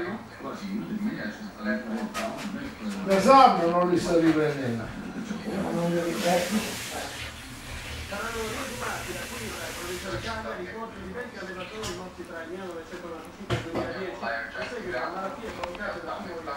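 Newborn puppies whimper and squeal close by.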